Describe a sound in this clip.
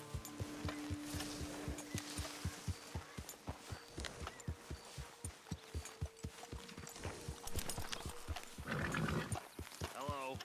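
Horse hooves thud steadily on soft ground.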